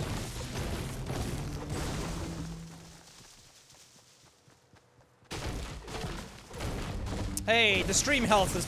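A pickaxe thuds against a tree again and again.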